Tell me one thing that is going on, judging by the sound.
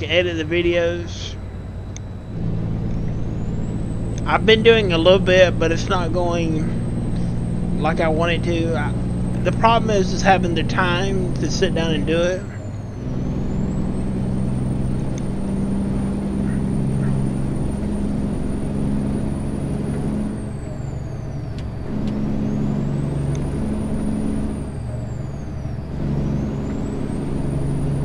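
A truck engine drones steadily.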